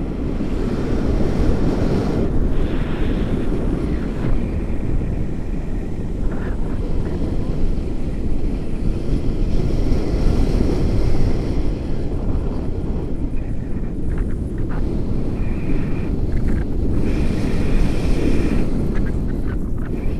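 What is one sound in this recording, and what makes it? A man speaks loudly over the wind, close by.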